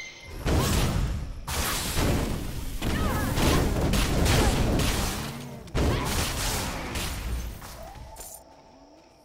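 Game fight sounds whoosh and crash loudly.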